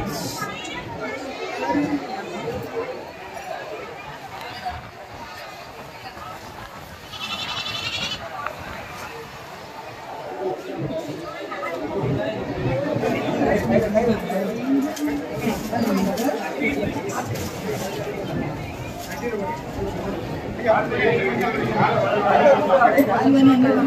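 A crowd of men talks loudly nearby.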